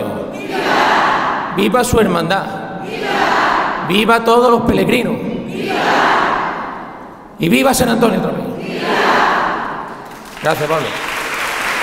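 A man speaks loudly into a microphone, heard through loudspeakers in a large echoing hall.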